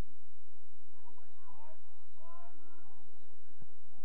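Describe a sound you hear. Young players shout to each other faintly in the distance on an open field.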